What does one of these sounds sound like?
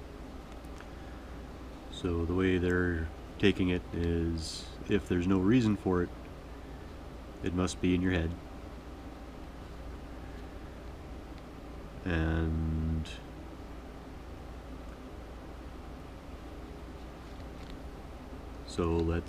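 Thread rustles as it is pulled through fabric.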